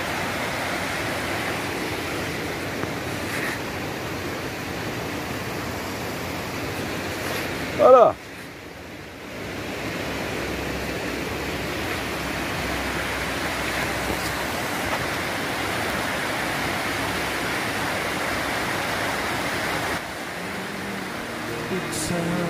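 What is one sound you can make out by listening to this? Water rushes and splashes steadily over a weir outdoors.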